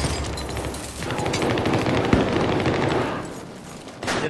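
Rapid gunfire crackles close by.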